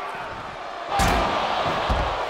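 A heavy body slams onto the floor with a thud.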